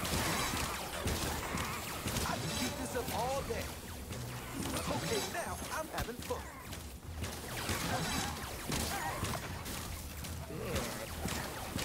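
Energy beams crackle and hum.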